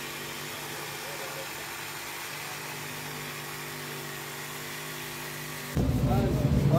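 A jigsaw buzzes as it cuts through wood.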